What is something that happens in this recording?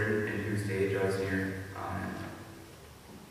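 A teenage boy reads out through a microphone in an echoing hall.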